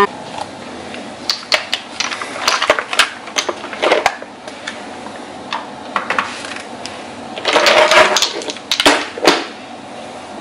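Glass bottles clink together as they are handled.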